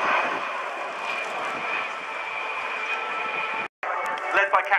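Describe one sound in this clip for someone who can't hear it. A large jet airliner drones overhead.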